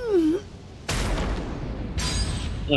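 A heavy blow lands with a deep booming crash.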